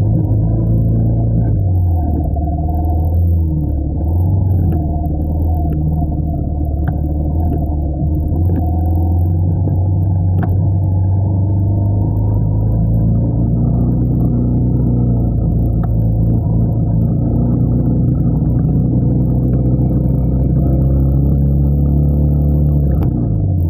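Bicycle wheels roll and tick on the road.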